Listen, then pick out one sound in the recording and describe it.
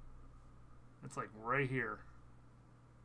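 A man exclaims briefly into a close microphone.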